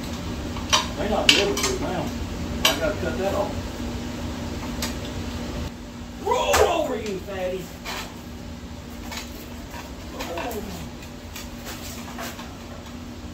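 Metal parts clank and knock sharply.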